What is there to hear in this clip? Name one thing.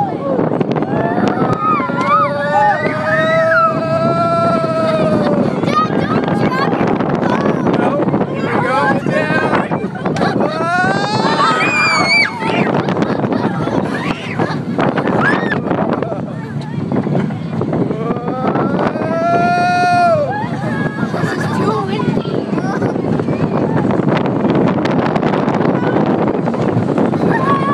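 Wind rushes loudly past on a fast ride.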